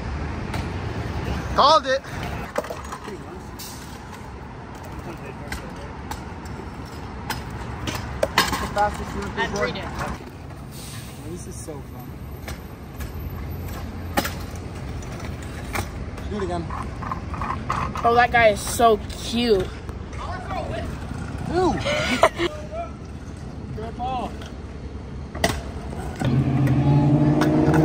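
Scooter wheels roll and rattle over paving stones.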